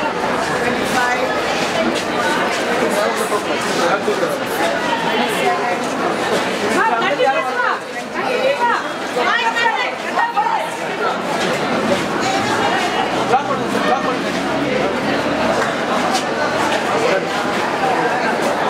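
A crowd of men and women talk over one another close by.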